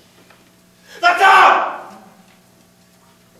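A young man shouts out.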